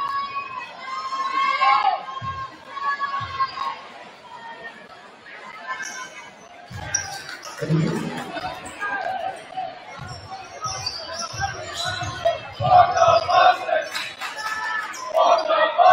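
A crowd cheers and chants loudly in a large echoing gym.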